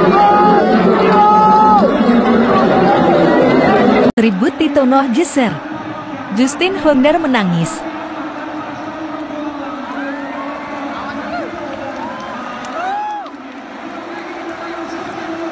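A large crowd cheers and chants loudly in an open stadium.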